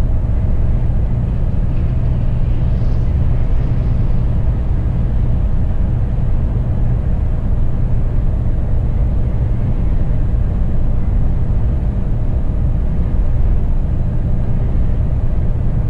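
Tyres rumble on the road at speed.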